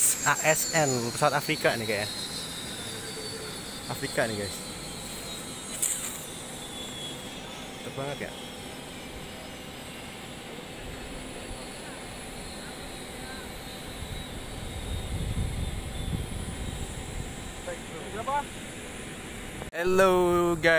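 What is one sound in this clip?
A twin-engine turboprop aircraft taxis, its turbines whining.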